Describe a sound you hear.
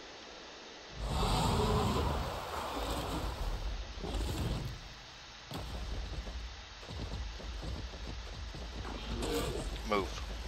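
Air rushes past in bursts as a creature glides and swoops.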